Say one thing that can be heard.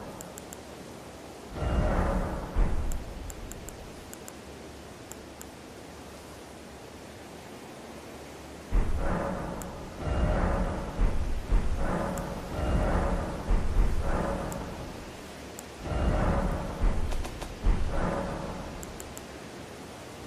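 Short soft ticks sound as menu choices change.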